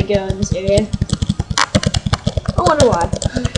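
Quick electronic hit sounds crack in rapid succession.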